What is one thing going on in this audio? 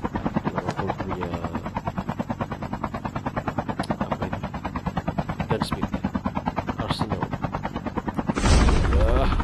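A helicopter's rotor thumps rapidly and steadily overhead.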